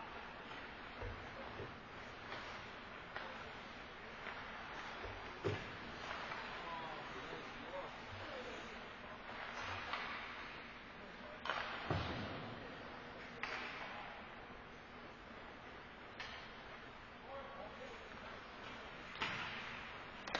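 Hockey sticks and pucks clack and thud against the ice and boards.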